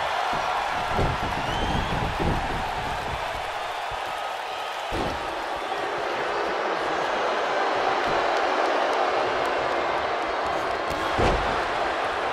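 Heavy thuds of bodies hitting a wrestling mat ring out now and then.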